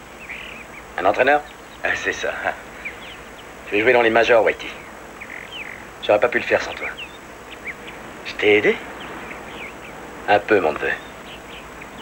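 A second man answers with animation.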